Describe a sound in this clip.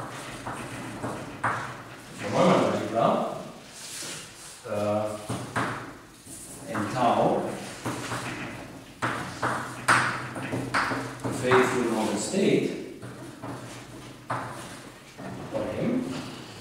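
A man speaks calmly, with an echo in a large room.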